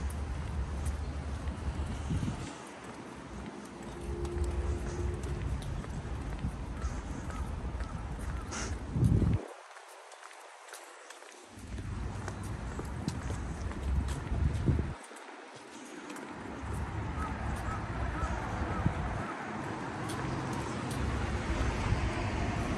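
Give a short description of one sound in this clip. Wind gusts across a microphone outdoors.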